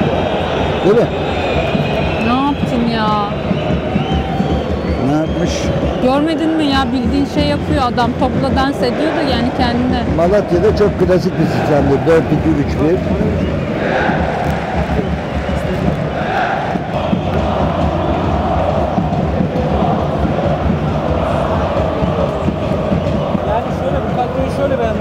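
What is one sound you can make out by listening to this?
A large crowd roars and chants steadily in a big open stadium.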